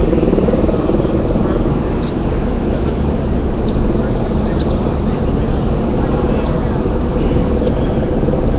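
A man talks close by, amid loud noise outdoors.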